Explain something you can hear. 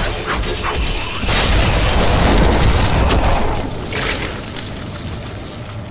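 Magic spells crackle and burst loudly during a fight.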